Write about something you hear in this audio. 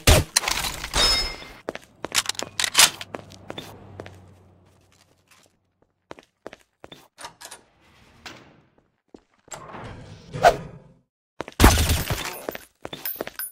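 Footsteps thud across a tiled roof.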